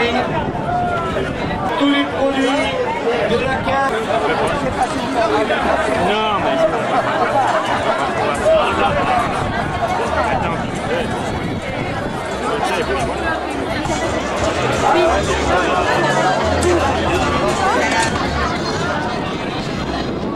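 A large crowd of men and women chatter and talk all around, close by.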